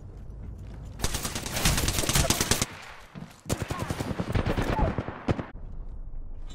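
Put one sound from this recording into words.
Gunshots fire rapidly in bursts.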